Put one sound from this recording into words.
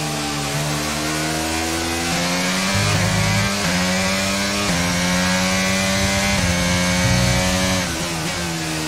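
A racing car engine screams loudly, rising in pitch as it shifts up through the gears.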